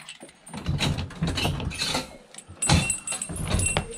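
A wire crate door rattles open.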